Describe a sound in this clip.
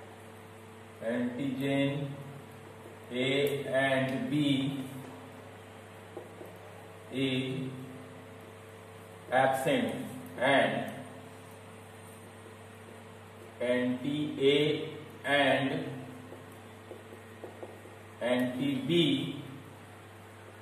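A man speaks calmly in short phrases, close by, with pauses.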